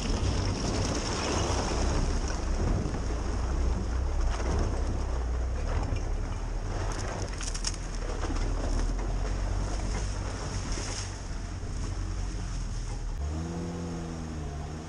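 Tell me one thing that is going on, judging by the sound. Tyres squelch and splash through mud and puddles.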